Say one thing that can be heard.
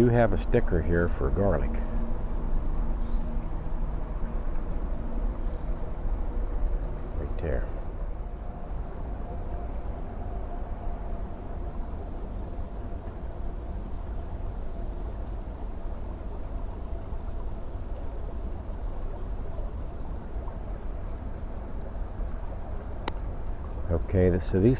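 A shallow stream trickles and babbles nearby.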